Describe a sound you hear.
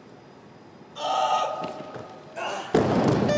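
A man grunts loudly with effort.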